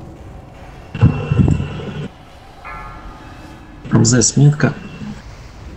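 Fiery spells burst with loud, booming explosions.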